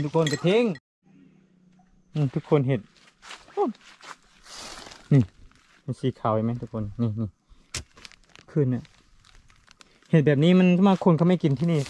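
A person's footsteps crunch through dry leaves.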